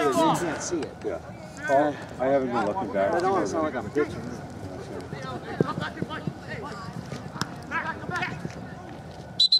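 Young men shout and call out loudly across an open field outdoors.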